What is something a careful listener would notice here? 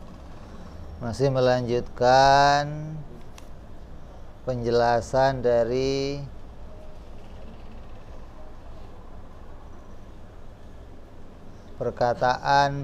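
A man recites in a drawn-out, melodic voice close to a microphone.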